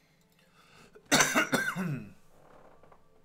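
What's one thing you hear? A man exclaims loudly and briefly, close to a microphone.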